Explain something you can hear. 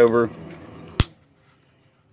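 A plastic buckle clicks shut.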